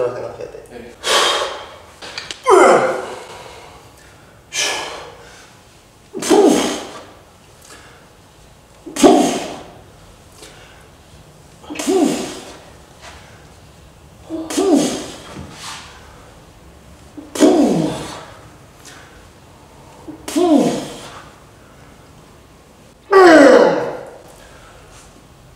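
A man blows out sharp, loud breaths in a steady rhythm.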